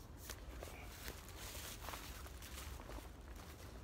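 Dry leaves rustle underfoot as a man walks.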